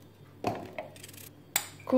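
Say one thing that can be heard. An eggshell cracks.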